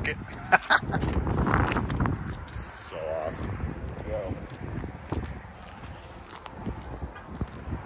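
Footsteps scuff on wet pavement outdoors.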